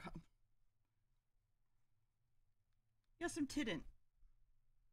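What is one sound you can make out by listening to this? A young woman speaks briefly and with animation into a microphone.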